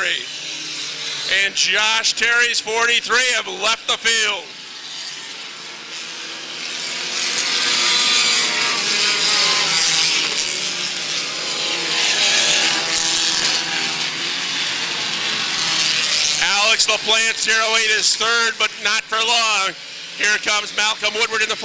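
Race car engines roar and rev loudly.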